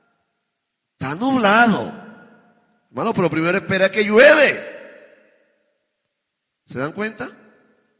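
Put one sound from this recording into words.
A man preaches with passion into a microphone, his voice echoing in a large hall.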